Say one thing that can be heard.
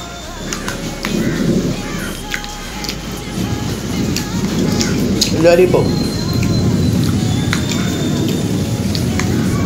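A young man chews food noisily close by.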